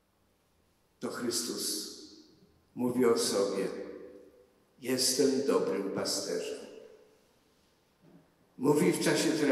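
An elderly man speaks slowly and solemnly into a microphone, heard over a loudspeaker in an echoing hall.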